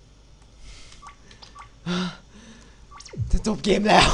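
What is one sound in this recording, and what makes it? Soft electronic menu blips sound a few times.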